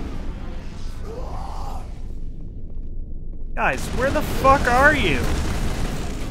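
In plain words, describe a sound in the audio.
A young man speaks close to a microphone.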